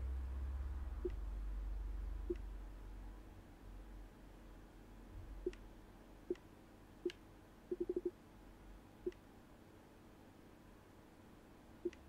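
Short soft electronic blips sound one after another.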